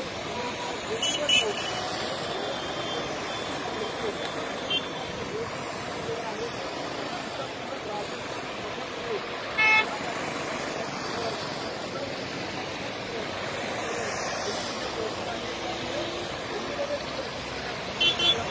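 Car horns honk in short bursts.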